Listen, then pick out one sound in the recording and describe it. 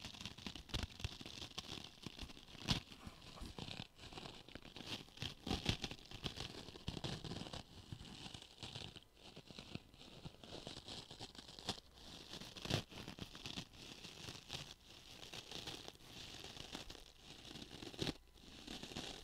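Sponges squeak and scrunch as they are squeezed and rubbed close up.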